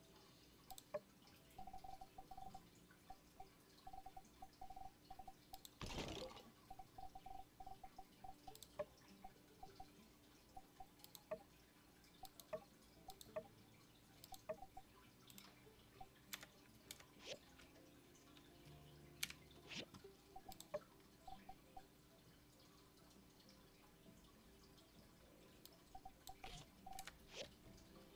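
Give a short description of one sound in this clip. Short electronic menu blips sound again and again.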